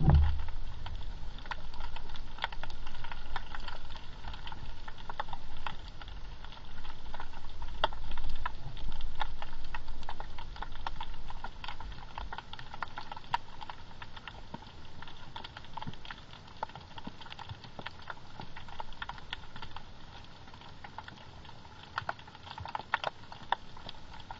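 Water murmurs with a low, muffled underwater rumble.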